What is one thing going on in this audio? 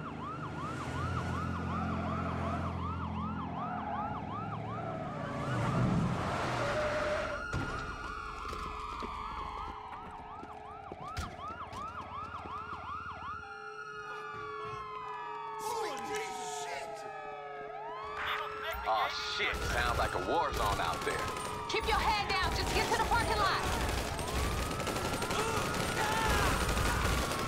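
Police sirens wail, rising and falling.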